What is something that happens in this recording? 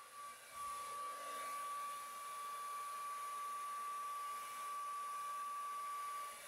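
A heat gun blows with a steady, high-pitched whirring hum.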